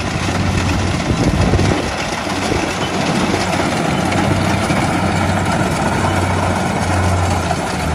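Cut rice stalks rustle and crackle through the harvester.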